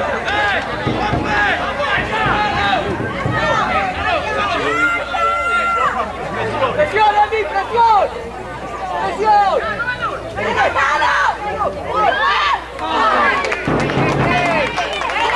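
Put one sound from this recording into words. Children shout and call out excitedly across an outdoor field.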